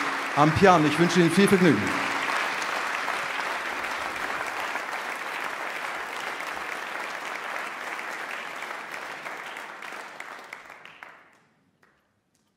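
An audience applauds loudly and then fades out.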